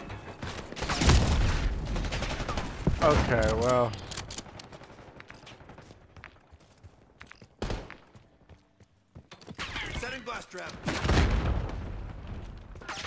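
Gunshots bang in loud bursts.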